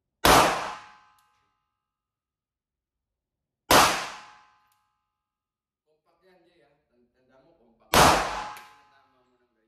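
Pistol shots ring out loudly, one at a time, with a short echo in an enclosed room.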